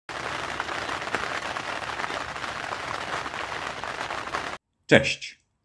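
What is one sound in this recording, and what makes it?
Rain patters steadily on the surface of water.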